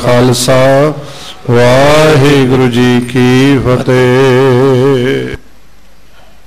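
A man chants in a sustained singing voice through a microphone.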